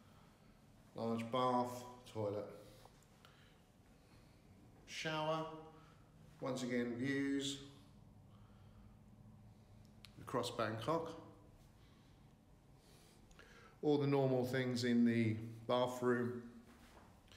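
A man speaks calmly close by, in short phrases with pauses, in a small echoing room.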